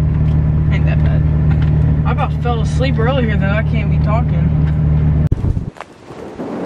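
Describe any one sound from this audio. A car engine hums steadily inside a vehicle.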